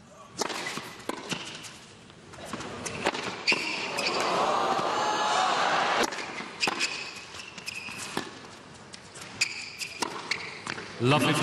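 A tennis ball is struck sharply by rackets and bounces on a hard court.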